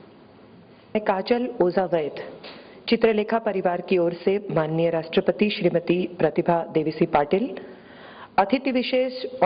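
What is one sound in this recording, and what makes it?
A woman speaks calmly into a microphone, heard through loudspeakers in a large room.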